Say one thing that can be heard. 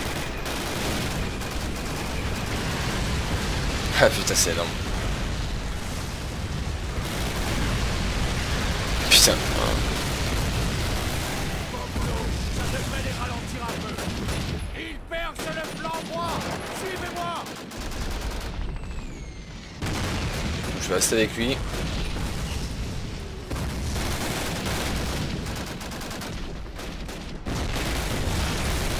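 Gunfire and explosions rumble steadily in the distance.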